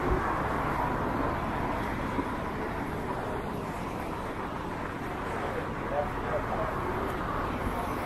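A bus drives past.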